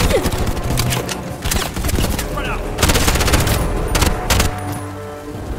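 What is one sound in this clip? Gunfire rattles in loud bursts.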